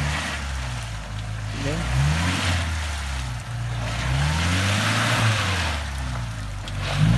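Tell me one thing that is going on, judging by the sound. Tyres splash and churn through mud.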